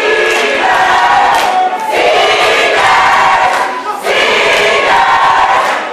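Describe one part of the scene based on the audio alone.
People in an audience clap their hands along.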